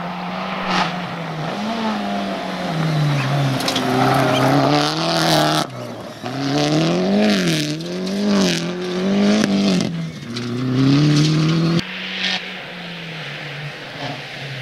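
A rally car engine roars, revving up and down through the gears.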